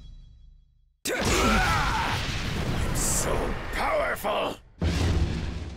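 Sword slashes whoosh and strike with loud crashing impacts.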